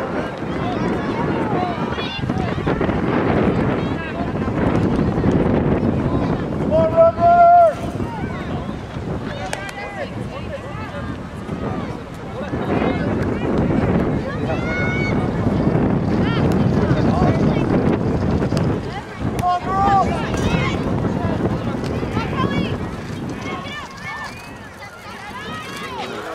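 Adult men and women talk loudly close by.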